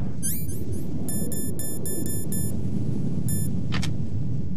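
Short electronic menu beeps chirp as items are cycled in a video game.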